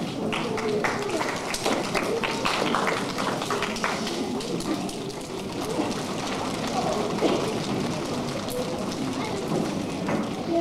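A group of children sing together.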